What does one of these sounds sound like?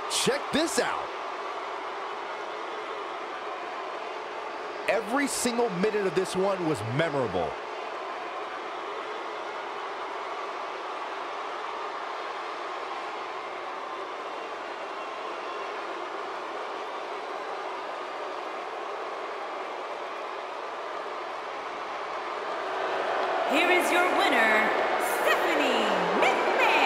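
A large crowd murmurs and cheers.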